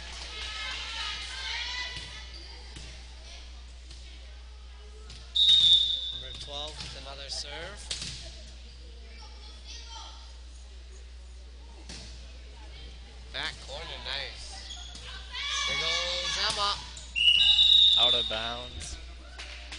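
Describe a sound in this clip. Young girls shout and call out during play.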